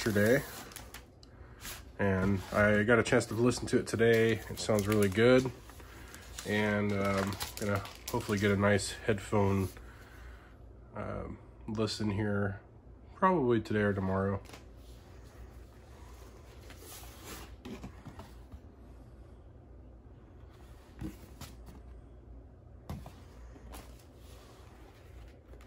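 Stiff paper sleeves rustle and slide against each other.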